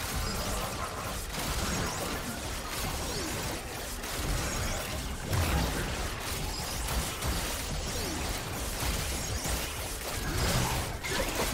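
Game spell effects whoosh and crackle repeatedly.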